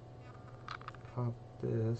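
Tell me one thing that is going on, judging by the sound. Small plastic parts click in a man's hands.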